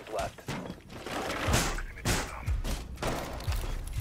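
Wooden boards crack and splinter as a barricade is smashed.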